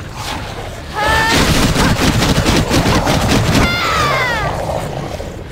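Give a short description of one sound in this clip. Beasts snarl and shriek.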